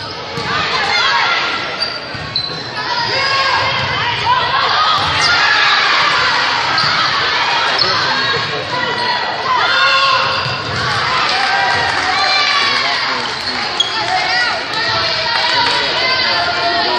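A crowd of young women cheers and shouts throughout a large echoing gym.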